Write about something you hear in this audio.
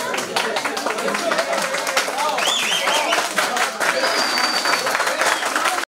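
A crowd of guests chatters and cheers loudly in an echoing hall.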